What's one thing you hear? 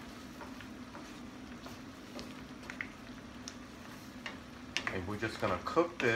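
A wooden spoon scrapes and taps against a metal pan while stirring thick food.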